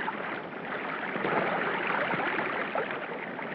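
A body plunges into the water with a loud splash.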